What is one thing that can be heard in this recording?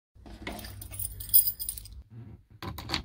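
Metal keys jingle as they are lifted from a hook.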